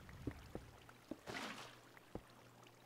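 Water pours out of a bucket with a splash.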